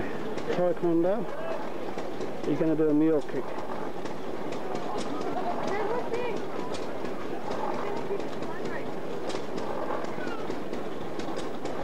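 A crowd murmurs faintly outdoors.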